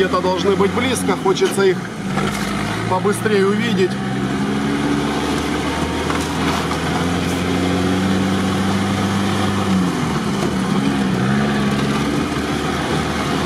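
An engine hums steadily as a vehicle drives along a bumpy track.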